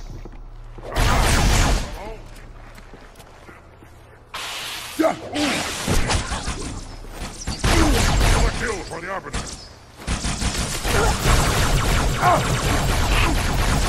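Plasma blasts and explosions crackle and boom.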